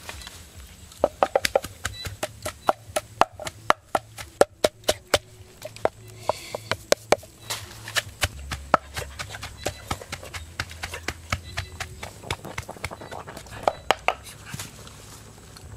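A pestle pounds rhythmically in a stone mortar.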